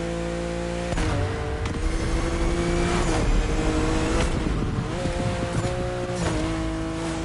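Exhaust pops and crackles from a sports car.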